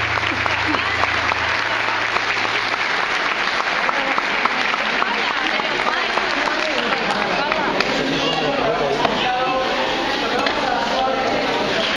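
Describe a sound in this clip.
A small folk band plays a lively tune on violin and keyboard in a large echoing hall.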